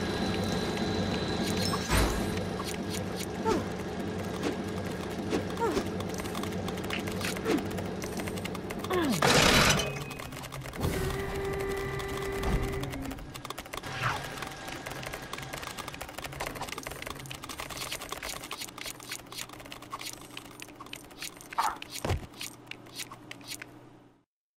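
Coins jingle as they are collected.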